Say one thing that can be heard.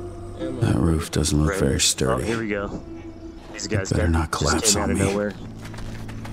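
A man talks with animation.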